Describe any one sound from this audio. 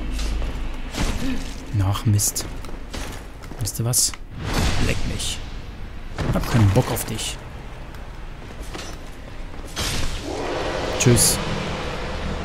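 Metal weapons clash and clang in a fight.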